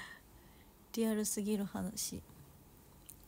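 A young woman speaks briefly and brightly close to the microphone.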